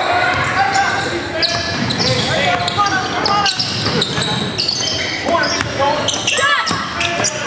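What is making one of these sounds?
Young players shout and call out to each other in an echoing gym.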